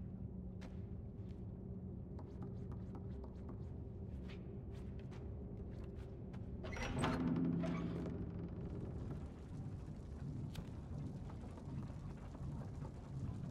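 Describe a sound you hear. Small footsteps patter on a creaky wooden floor.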